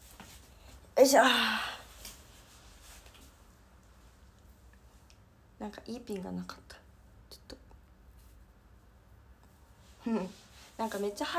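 A young woman speaks softly and close by into a phone microphone.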